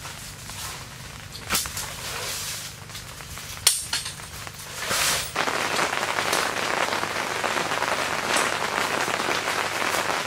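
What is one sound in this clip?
Fabric rustles.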